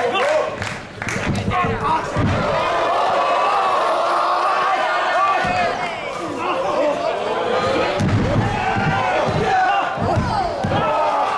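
A body slams heavily onto a wrestling mat with a deep thud.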